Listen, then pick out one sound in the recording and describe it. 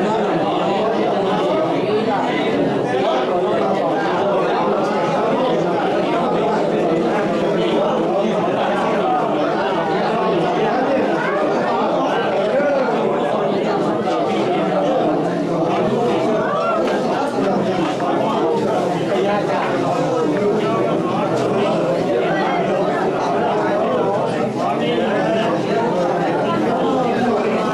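A crowd of men and women talk and murmur all at once, close by.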